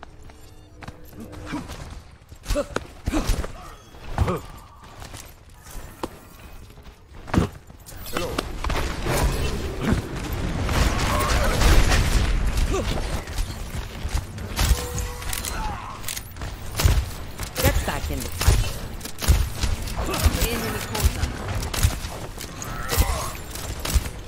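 Video game guns fire in quick bursts.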